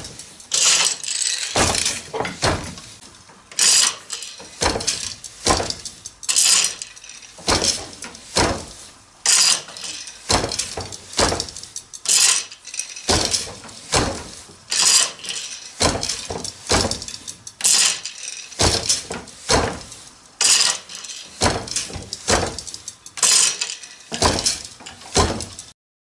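A loom's shuttle swishes across the threads.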